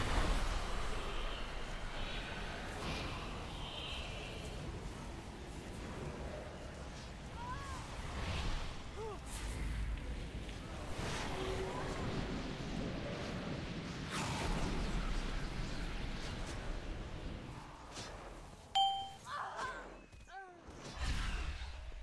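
Spell effects crackle and whoosh in a game battle.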